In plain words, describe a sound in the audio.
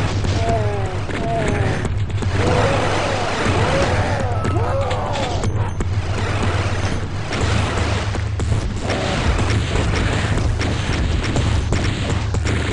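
Monsters growl and screech.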